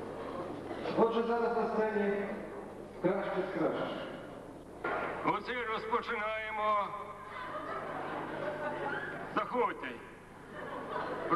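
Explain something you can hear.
A man speaks into a microphone over a loudspeaker with animation.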